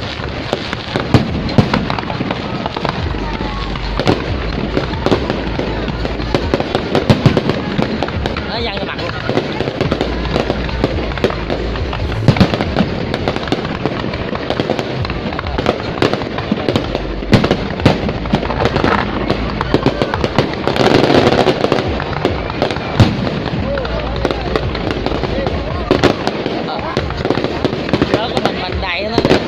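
Fireworks shoot up with a hissing whoosh.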